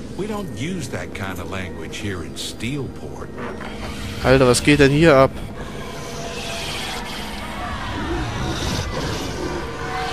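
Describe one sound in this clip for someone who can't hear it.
A man speaks sternly.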